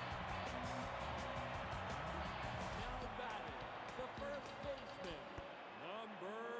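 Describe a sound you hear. A crowd cheers loudly in a large stadium.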